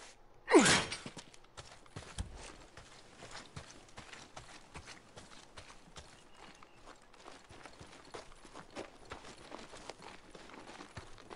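Footsteps crunch through brush and undergrowth.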